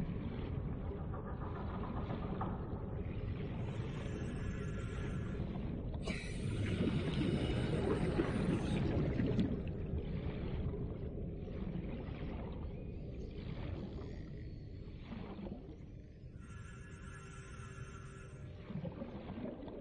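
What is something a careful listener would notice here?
Water rushes and burbles steadily underwater as a swimmer moves along.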